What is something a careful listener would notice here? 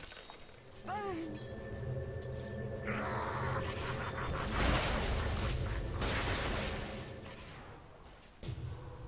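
Magical game effects whoosh and crackle.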